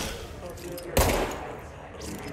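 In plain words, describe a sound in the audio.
A pistol fires a single sharp shot.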